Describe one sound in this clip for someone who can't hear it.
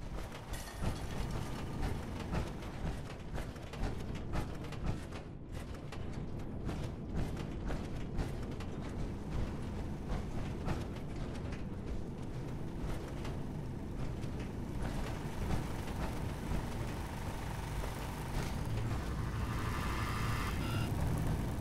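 Heavy metal footsteps clank steadily on hard floors.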